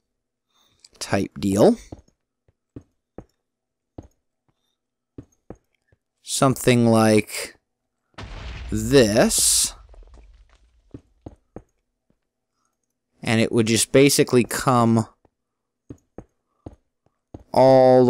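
Stone blocks are set down one after another with soft, short knocks.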